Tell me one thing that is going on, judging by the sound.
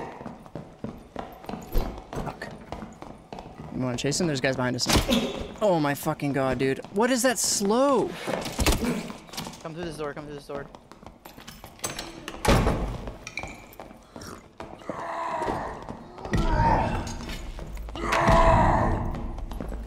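Weapons clang and thud in a fight.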